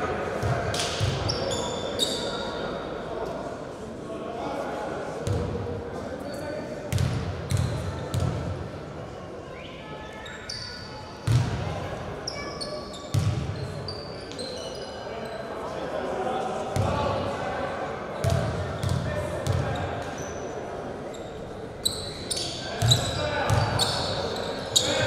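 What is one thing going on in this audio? A basketball bounces on a wooden floor, with thumps echoing in a large hall.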